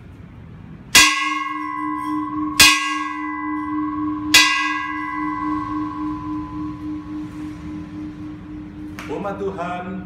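A bell rings loudly three times and rings on afterward.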